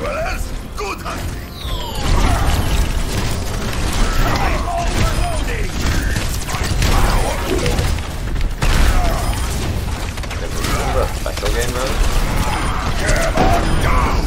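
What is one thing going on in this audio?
Rapid video game gunfire rattles.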